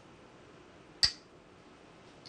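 A game stone clacks sharply onto a board.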